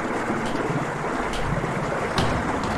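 A heavy door slams shut.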